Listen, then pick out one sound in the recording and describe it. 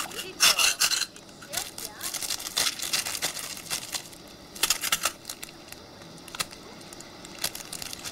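Ice cubes clatter as they pour out of a bag into a container.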